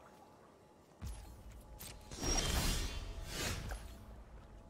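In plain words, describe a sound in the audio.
A deep magical rumble and whoosh sound as a creature enters play.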